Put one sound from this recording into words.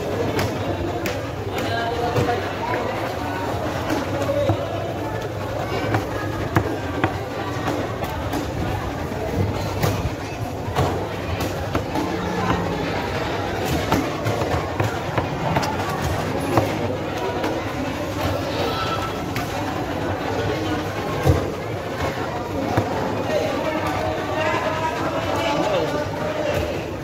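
A knife chops and thuds on a wooden block.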